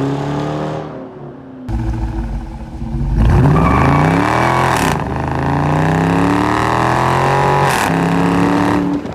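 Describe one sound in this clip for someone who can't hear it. A car engine revs hard through the gears, its exhaust roaring loudly up close.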